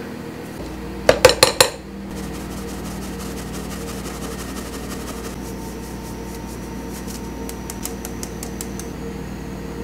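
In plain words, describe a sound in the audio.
A sieve knocks and taps against a glass bowl.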